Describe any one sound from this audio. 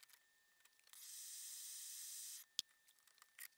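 A gas torch hisses with a steady rush.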